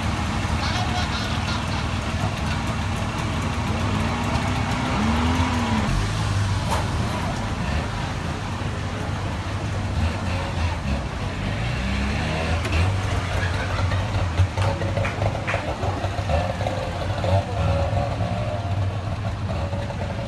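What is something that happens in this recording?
A small car engine idles and putters nearby.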